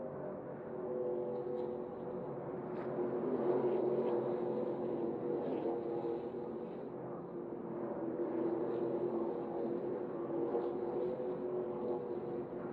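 Racing truck engines roar past up close.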